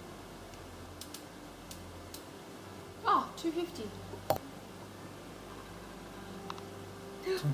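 A plastic cap clicks.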